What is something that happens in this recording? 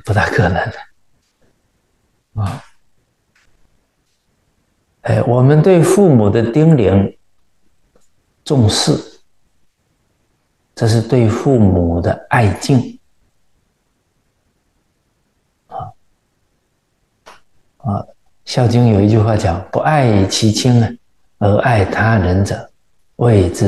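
A middle-aged man speaks calmly and warmly into a close microphone, with pauses.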